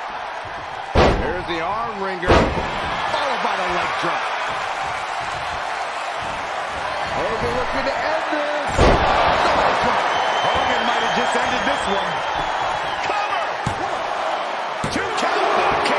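Heavy bodies slam hard onto a wrestling ring mat with loud thuds.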